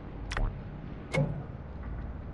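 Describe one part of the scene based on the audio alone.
Two short electronic menu beeps sound in quick succession.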